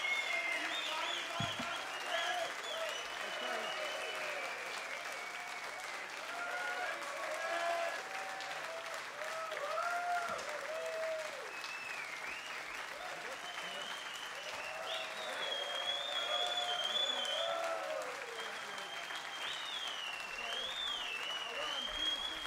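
A crowd applauds and cheers loudly outdoors.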